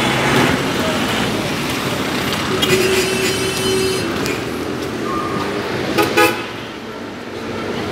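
A car engine idles and drives slowly past close by.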